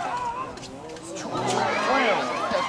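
A crowd cheers loudly, swelling near the end.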